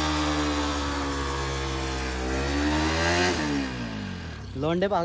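A motorcycle engine revs hard and loud, then drops and revs again.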